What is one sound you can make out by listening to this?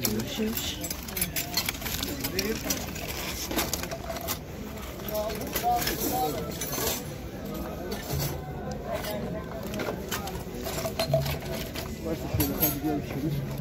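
Voices of people nearby murmur outdoors.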